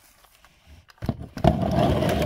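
Bubble wrap crinkles in a cardboard box.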